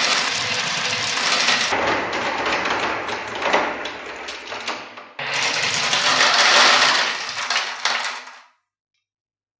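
Glass marbles roll and clatter down plastic ramps.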